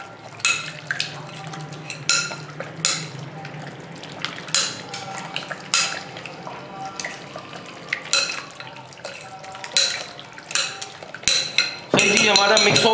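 A metal spoon clinks and scrapes against a glass bowl.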